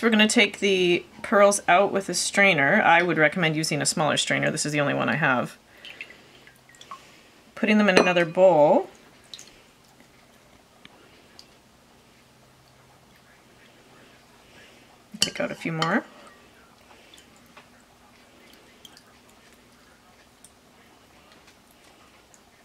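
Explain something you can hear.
Liquid drips and trickles from a strainer into a bowl.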